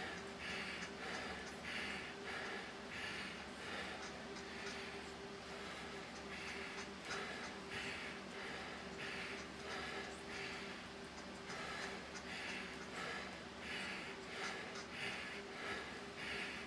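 A bicycle trainer whirs steadily.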